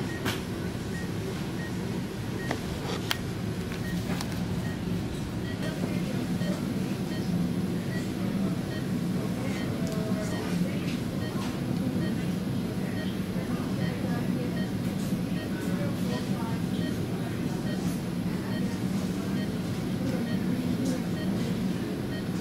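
A medical monitor beeps softly at a steady pace.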